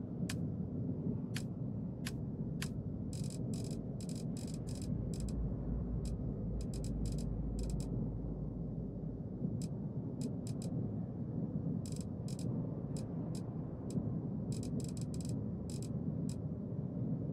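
A game menu clicks softly, sometimes in quick bursts.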